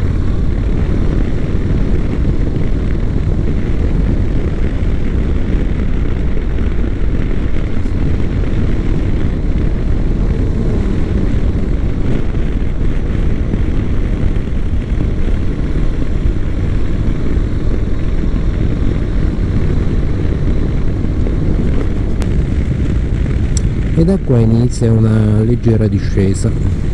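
A motorcycle engine hums steadily and revs up near the end.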